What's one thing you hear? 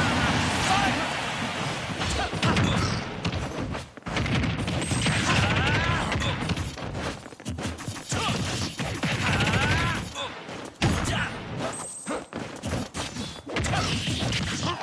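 Fighting sound effects crash, thud and boom in quick bursts.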